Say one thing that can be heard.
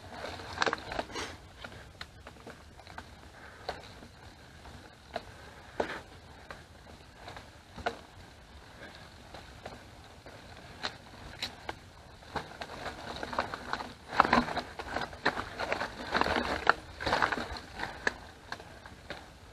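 A bicycle rattles and clicks over bumps.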